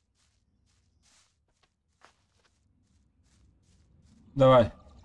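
Footsteps crunch softly over leaves and dirt.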